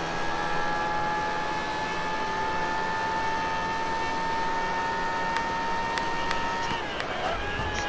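A racing car engine screams steadily at high revs.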